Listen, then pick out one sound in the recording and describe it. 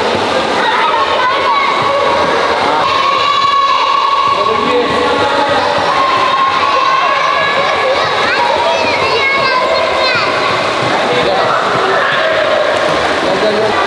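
Water splashes as swimmers kick and stroke.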